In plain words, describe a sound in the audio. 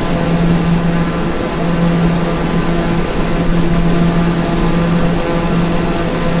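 A single-engine turboprop drones in cruise flight.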